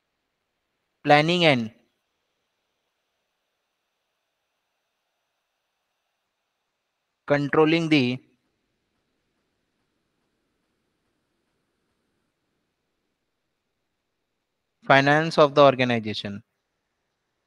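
A young man speaks calmly into a microphone in short phrases.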